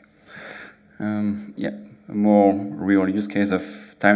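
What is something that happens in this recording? A man speaks through a microphone, in a room with some echo.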